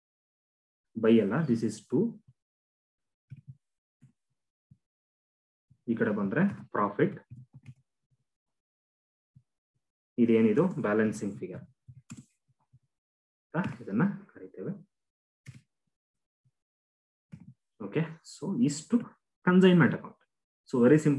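A man speaks calmly and explains in short phrases, close to a microphone.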